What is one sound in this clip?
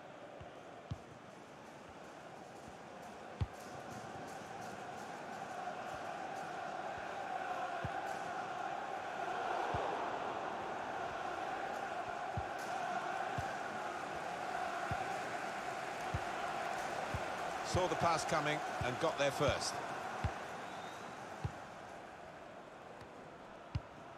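A football is kicked with dull thumps now and then.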